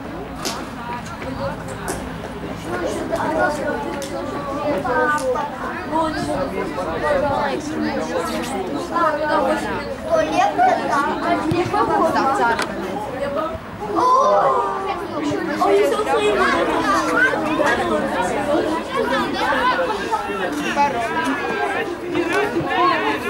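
Spectators close by chatter among themselves in men's and women's voices.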